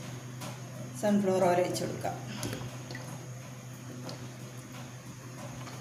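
Oil trickles into a pan.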